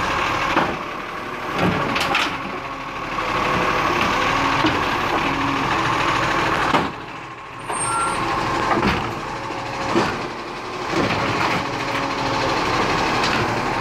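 A hydraulic arm whines as it lifts and tips a bin.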